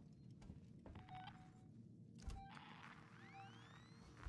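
A handheld tracker beeps.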